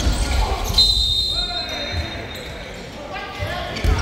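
Basketball shoes squeak on a hardwood court in an echoing gym.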